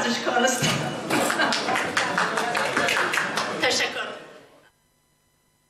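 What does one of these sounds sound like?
Live band music plays loudly in a room with a crowd.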